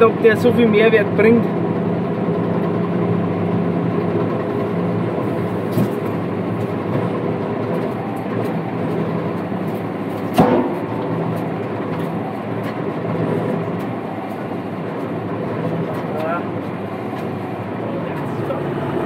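A tractor engine hums steadily.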